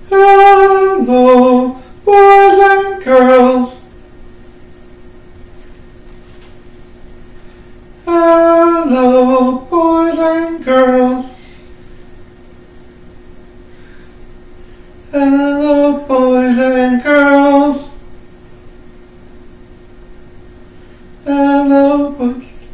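A man sings short phrases of held notes close by, with pauses between them.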